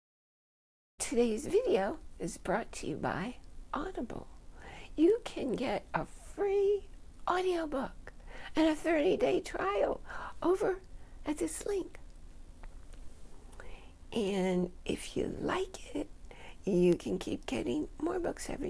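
An older woman speaks with animation close to the microphone.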